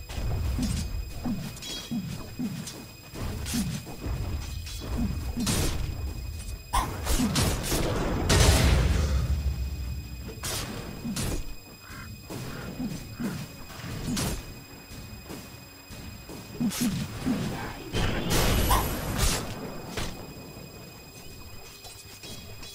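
Game spells crackle and clash in a fight.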